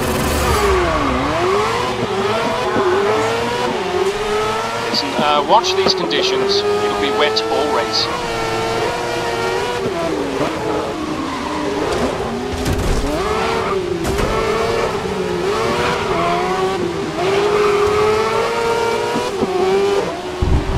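Tyres hiss on a wet track.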